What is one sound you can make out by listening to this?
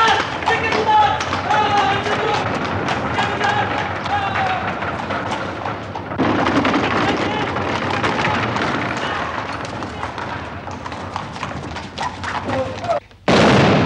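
A horse's hooves clatter on cobblestones.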